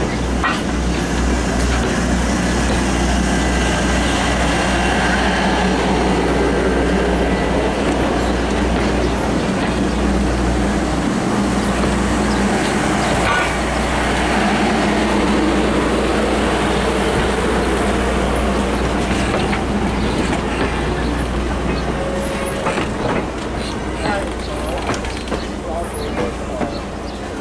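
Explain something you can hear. A crowd of people murmurs in the distance outdoors.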